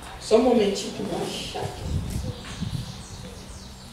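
A young woman speaks into a microphone, reading out calmly over a loudspeaker.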